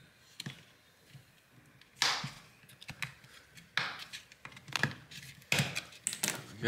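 A plastic pry tool clicks and snaps as a casing is pried apart.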